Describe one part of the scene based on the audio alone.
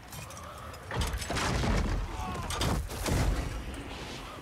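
Metal weapons clash.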